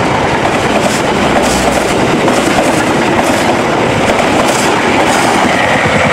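A passing train's wheels rumble and clatter loudly over the rails.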